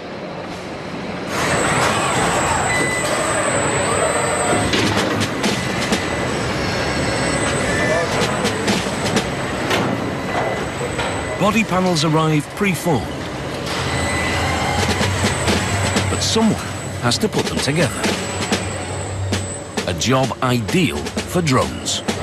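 Industrial robots whir and clank as they move car body panels.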